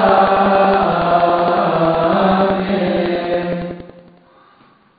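A group of men chant loudly in unison in an echoing hall.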